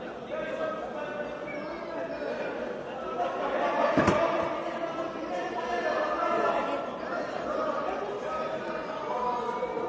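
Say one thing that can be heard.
Several men shout instructions loudly from close by in a large echoing hall.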